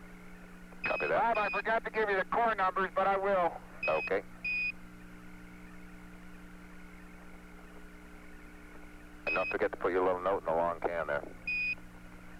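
A man talks over a crackly radio link.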